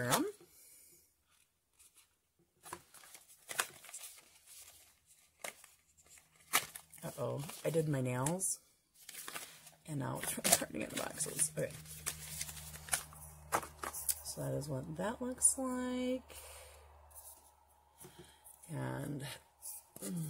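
A woman talks calmly and close to a microphone.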